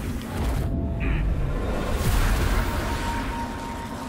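A magical blast bursts with a loud rushing whoosh.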